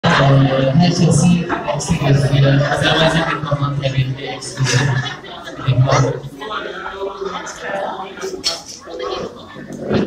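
A young man sings into a microphone through loudspeakers in an echoing hall.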